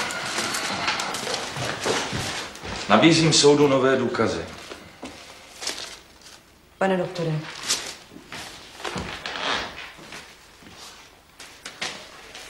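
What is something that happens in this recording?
Paper rustles in hands.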